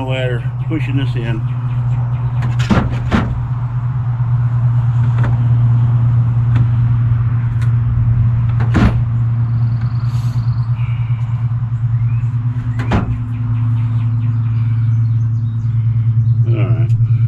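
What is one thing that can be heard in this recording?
A man speaks loudly from a short distance outdoors.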